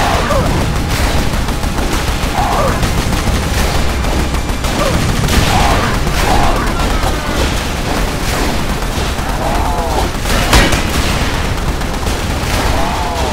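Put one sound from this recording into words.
Rapid gunfire rattles without pause.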